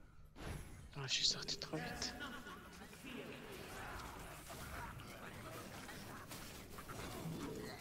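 Magic spells burst and crackle in a noisy fight.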